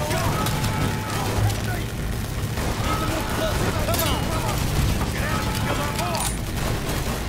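Pistol shots crack sharply.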